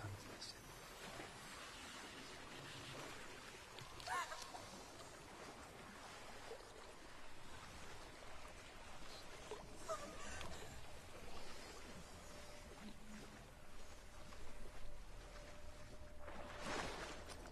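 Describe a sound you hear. Water splashes as a person wades through it.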